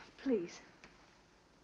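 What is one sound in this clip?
A woman speaks briefly and sharply.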